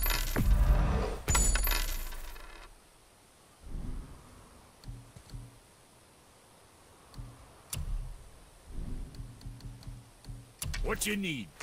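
Short game menu clicks and chimes sound as selections change.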